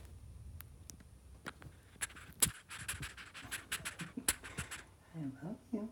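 A squirrel sniffs and snuffles right up close.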